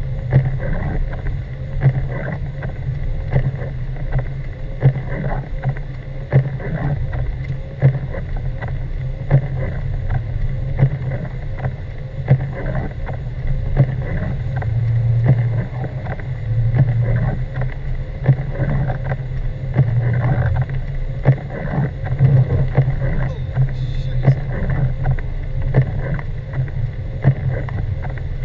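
A car engine hums, heard from inside the car.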